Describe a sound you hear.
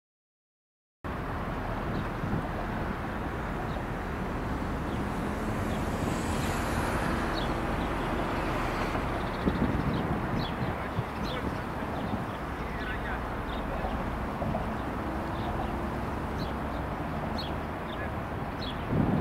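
A tram rumbles slowly closer along the rails.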